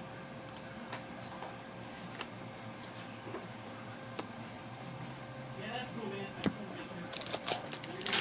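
Trading cards flick and shuffle in a man's hands.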